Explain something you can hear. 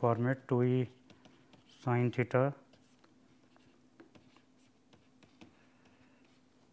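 A pen taps and scratches lightly on a writing surface.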